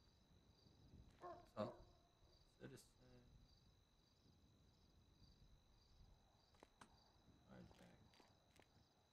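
A young man speaks calmly and briefly into a close microphone.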